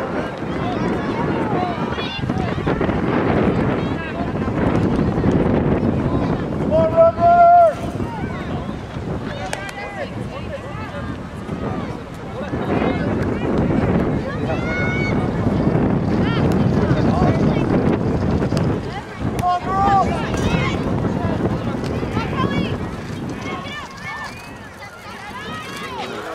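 Young women shout to each other across an open field.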